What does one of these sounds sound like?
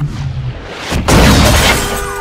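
A car crashes with a loud crunch.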